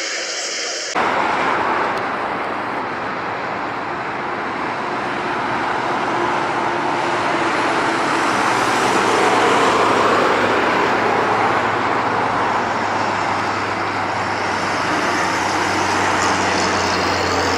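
Jet engines roar loudly as a large airliner takes off.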